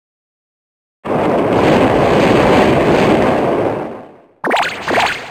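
A loud video game whoosh bursts and slowly fades.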